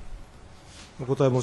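A man begins speaking into a microphone.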